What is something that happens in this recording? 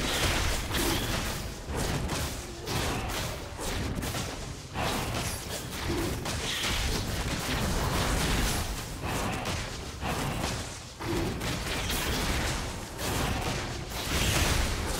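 Weapon blows strike a large beast again and again.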